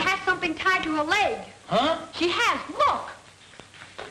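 A woman shouts in a high, excited voice.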